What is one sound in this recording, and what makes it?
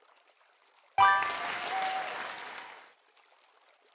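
A sparkling burst of celebration sound effects plays as confetti bursts.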